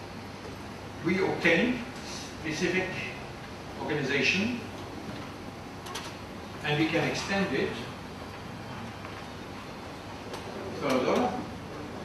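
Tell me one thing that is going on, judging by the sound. An elderly man speaks calmly through a microphone in a large echoing hall, pausing between phrases.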